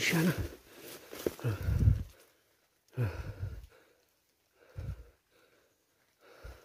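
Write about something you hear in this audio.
A small animal thrashes about, rustling dry leaves and twigs.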